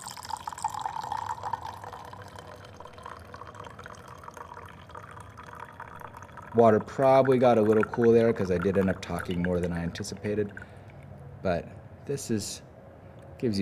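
Tea pours in a thin stream into a glass jug, trickling and then dripping.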